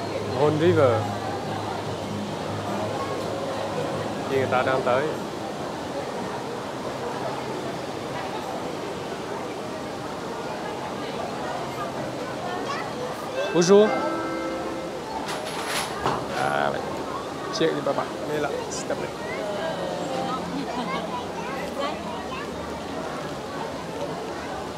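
Children and adults chatter nearby.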